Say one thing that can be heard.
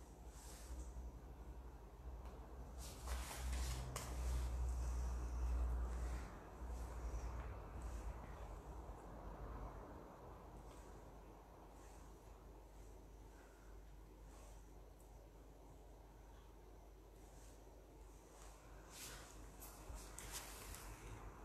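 Hands rustle and tap softly on a plastic mat.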